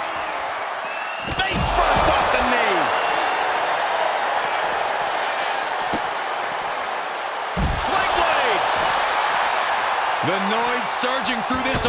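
A large crowd cheers and roars loudly in an echoing arena.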